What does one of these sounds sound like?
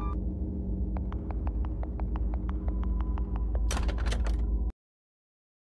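Quick game footsteps tap in an even rhythm.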